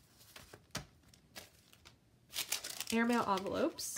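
Paper taps softly onto a hard surface.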